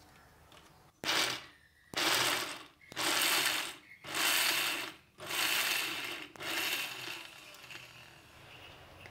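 A mixer grinder whirs loudly in short repeated bursts.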